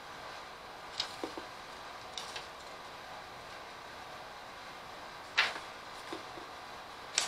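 Small objects click and rustle.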